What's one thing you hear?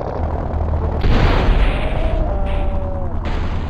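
A truck crashes and bangs loudly as it jumps.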